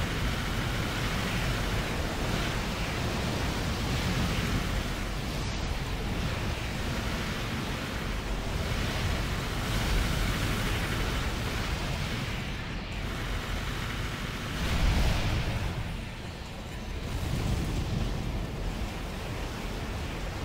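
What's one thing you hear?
Jet engines roar steadily as a robot skims over water.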